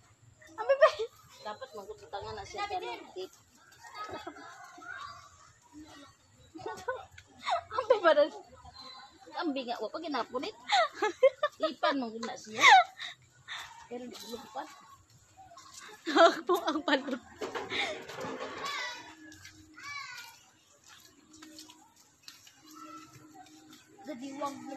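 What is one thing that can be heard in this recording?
A young woman talks close by with animation.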